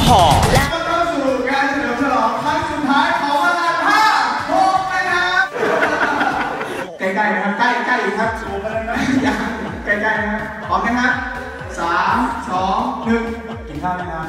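A young man talks animatedly through a microphone and loudspeakers in an echoing hall.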